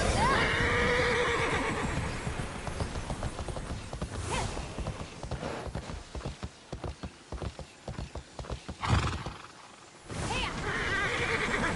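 A running mount's hooves thud quickly on the ground.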